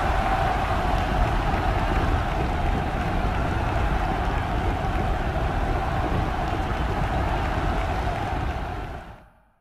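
Many horses gallop on turf, hooves drumming rapidly.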